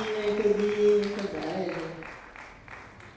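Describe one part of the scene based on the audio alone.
A group of children sings together on a stage, the song ending on a held note.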